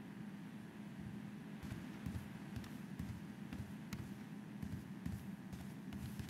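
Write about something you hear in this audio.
Footsteps tap at a steady pace on a hard floor.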